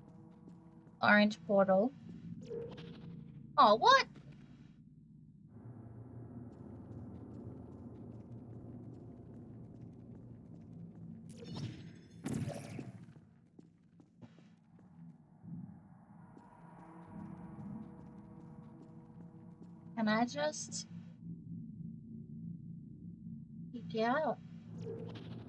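A young woman speaks in short bursts into a close microphone.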